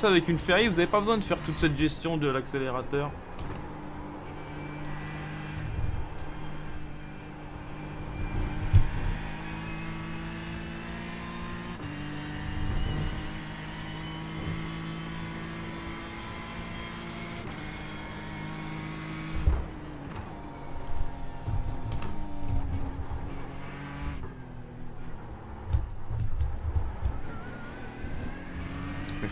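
A racing car engine drones steadily, its pitch rising and falling with gear changes.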